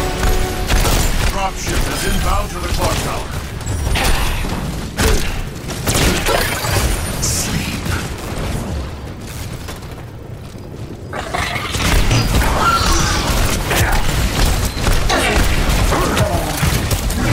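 Guns fire in rapid bursts with loud blasts and explosions.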